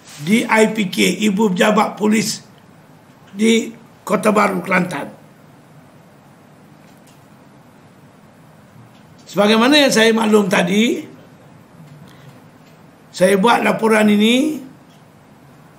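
An elderly man speaks firmly into microphones, in short bursts with pauses.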